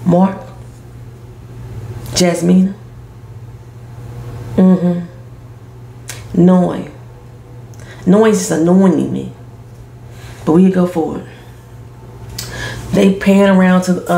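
A woman speaks calmly and thoughtfully close to a microphone, with pauses between phrases.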